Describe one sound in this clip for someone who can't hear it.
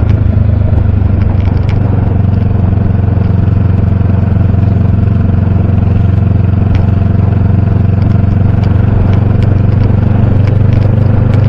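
A motorcycle engine rumbles steadily up close while riding.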